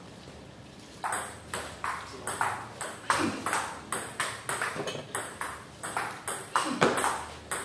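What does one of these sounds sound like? A table tennis ball clicks quickly back and forth between paddles and table in an echoing hall.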